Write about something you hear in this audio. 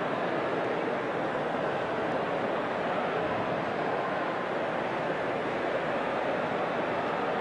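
A dense crowd of men and women chatter loudly all around.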